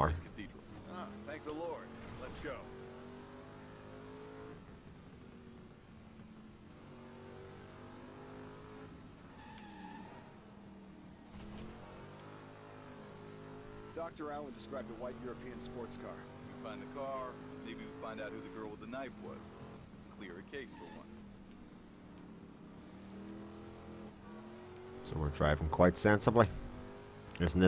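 A car engine hums and revs as a car speeds along.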